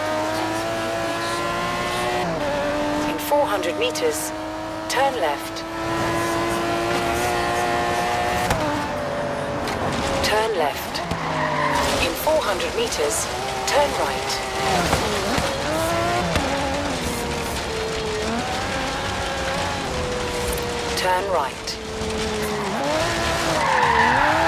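A sports car engine roars at high revs, shifting gears as it speeds up and slows down.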